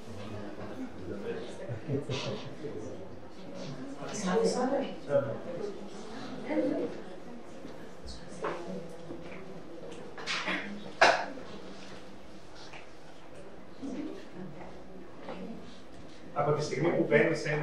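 Adults murmur and talk quietly in a room.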